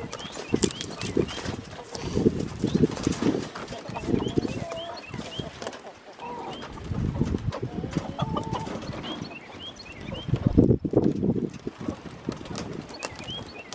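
A wheeled wooden coop rumbles and creaks as it is rolled over rough ground.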